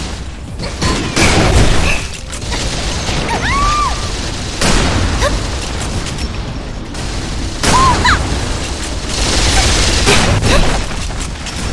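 Weapons fire with loud blasts and explosions.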